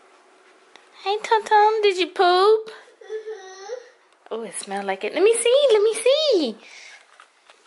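A young child talks in a high voice close by.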